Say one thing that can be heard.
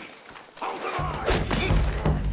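Blows and thuds of a scuffle ring out.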